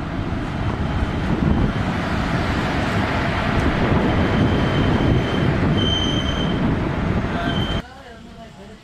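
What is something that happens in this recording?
Train wheels clatter and screech past close by.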